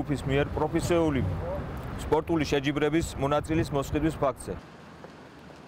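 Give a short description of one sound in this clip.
A man speaks firmly close by.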